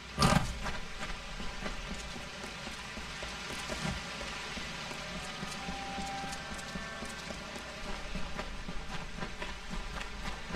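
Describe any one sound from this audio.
Footsteps thud quickly on dirt as a figure runs.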